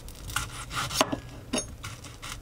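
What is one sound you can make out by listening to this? A knife chops onto a board.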